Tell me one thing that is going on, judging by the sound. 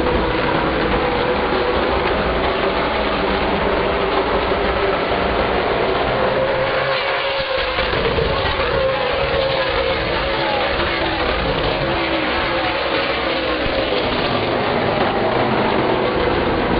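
Race car engines roar loudly as the cars speed around a track.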